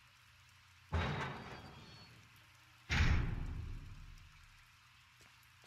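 A heavy metal door clanks open with a booming echo.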